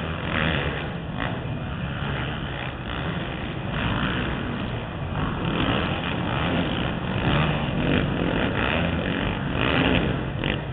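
Motorcycle engines rev and roar loudly nearby.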